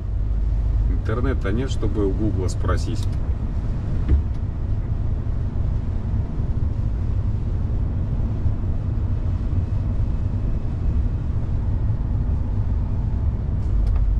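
A vehicle's engine rumbles steadily from inside the cab.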